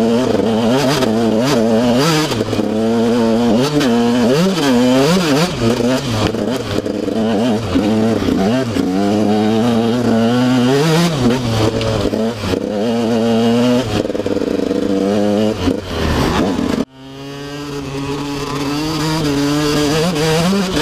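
A dirt bike engine revs up and down, close by.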